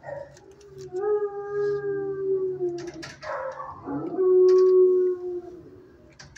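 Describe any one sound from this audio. A dog whines in a high voice.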